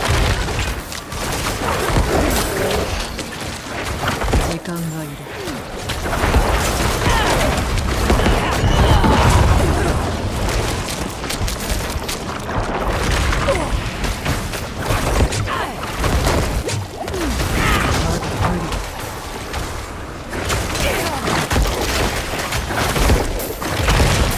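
Dull booming impacts thud again and again.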